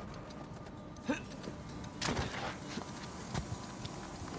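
Footsteps scrape and thud on rock.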